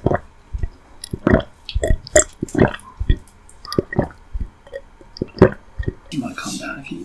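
A woman chews and bites food close to a microphone, with crisp wet mouth sounds.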